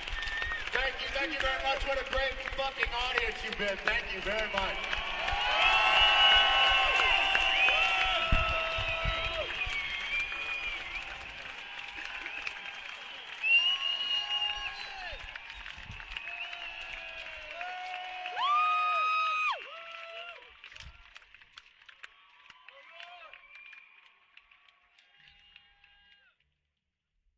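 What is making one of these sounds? A man sings loudly into a microphone at a live concert.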